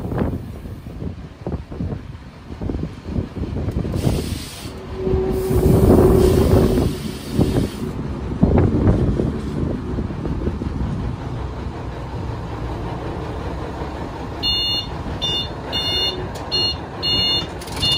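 An old train rumbles and clatters along the rails.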